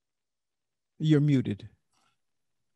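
An older man speaks briefly and calmly into a close microphone.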